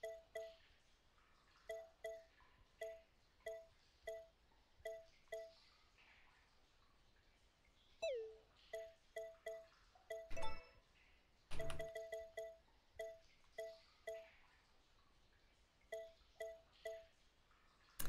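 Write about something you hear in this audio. Short soft electronic blips sound again and again.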